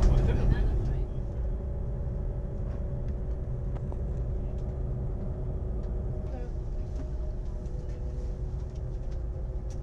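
A high-speed train rumbles at speed, heard from inside the carriage.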